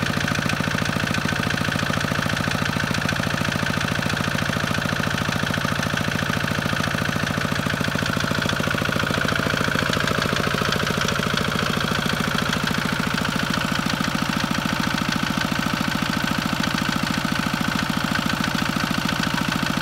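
A small diesel engine chugs loudly and steadily close by.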